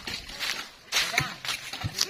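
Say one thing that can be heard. A stream trickles over stones.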